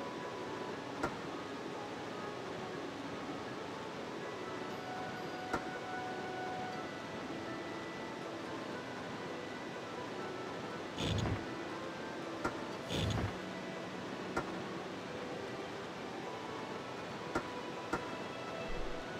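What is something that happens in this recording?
Heavy stone tiles slide and clunk into place.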